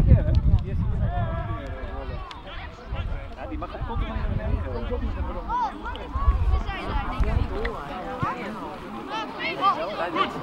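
Young boys shout and cheer nearby, outdoors.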